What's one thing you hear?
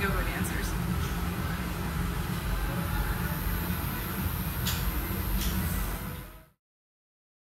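A tattoo machine buzzes steadily.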